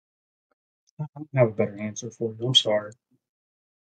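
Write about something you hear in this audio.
Another man answers over an online call.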